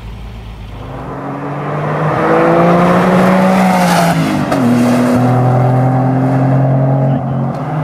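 A sports car engine screams at high revs as the car speeds past.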